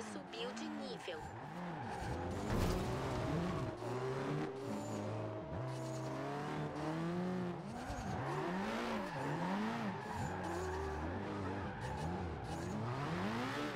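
Car tyres screech while drifting.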